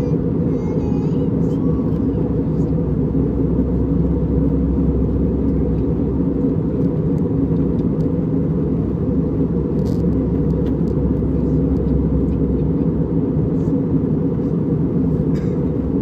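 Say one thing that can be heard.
Jet engines roar in a steady, low drone inside an aircraft cabin.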